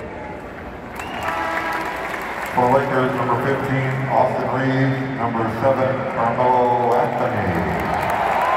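Music blares over arena loudspeakers.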